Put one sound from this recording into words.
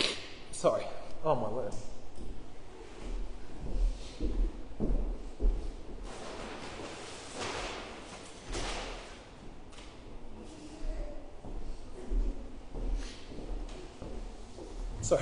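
A man speaks calmly to an audience in a large echoing hall.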